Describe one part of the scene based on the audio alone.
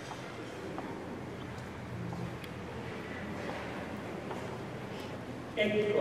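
Footsteps shuffle slowly across a stone floor in an echoing hall.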